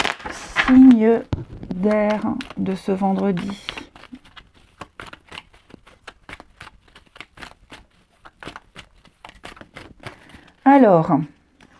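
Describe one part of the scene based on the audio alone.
Playing cards riffle and flick rapidly as a deck is shuffled.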